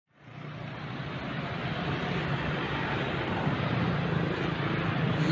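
Motorcycle engines hum steadily as they pass along a street.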